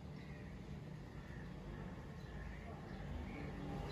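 Oil trickles into a metal pan.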